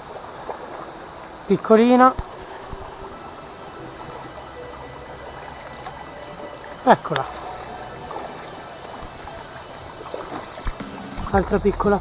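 A shallow mountain stream trickles and babbles over rocks.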